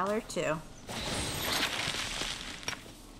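A magical sparkle shimmers and chimes.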